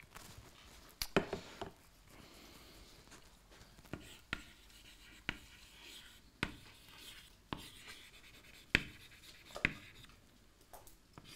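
Chalk taps and clicks against a board while writing.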